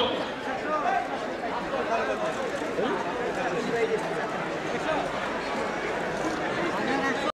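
A crowd of people chatter all around, close by.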